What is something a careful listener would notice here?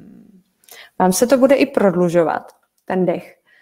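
A woman speaks calmly close to a microphone.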